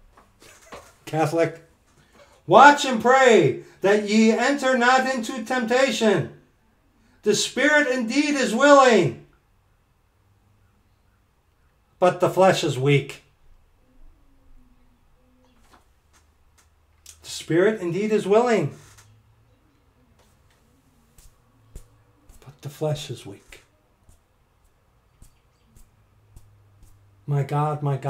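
A middle-aged man speaks with animation into a close microphone, pausing often.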